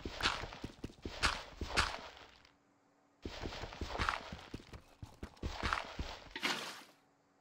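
A pickaxe chips repeatedly at stone.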